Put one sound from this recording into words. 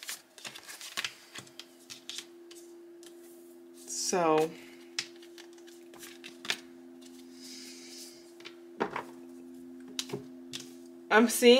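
Playing cards slide and tap softly on a hard table.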